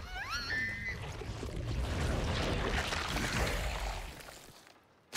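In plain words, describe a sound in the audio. A creature snarls and growls deeply.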